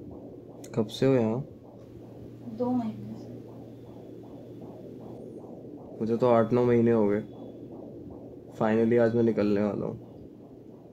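A young man speaks softly and close by.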